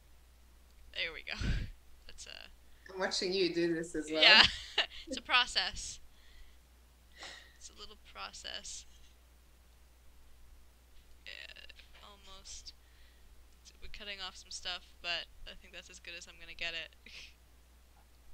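Another young woman answers and laughs over an online call.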